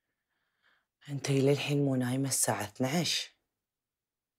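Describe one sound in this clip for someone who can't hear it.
A woman speaks loudly and with feeling, close by.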